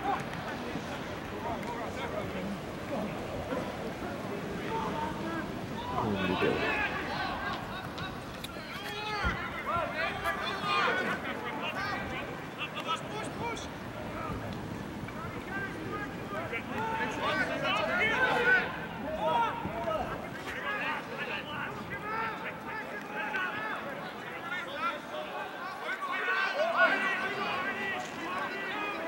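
A crowd of spectators cheers and shouts nearby.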